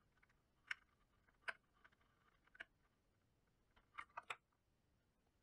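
Small plastic parts click and tap as fingers handle a junction box.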